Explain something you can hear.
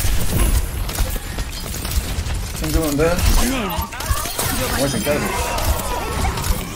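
Game gunfire thuds repeatedly.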